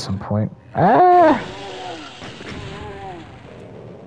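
A fireball bursts with a rushing roar.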